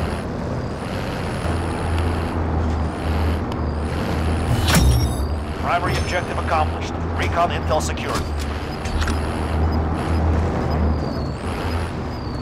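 A heavy truck engine rumbles steadily as the truck drives along a road.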